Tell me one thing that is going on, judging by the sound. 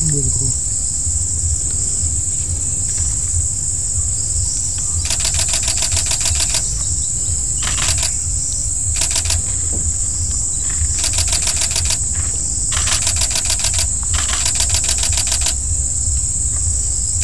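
An elephant brushes and rustles through tall grass and leaves.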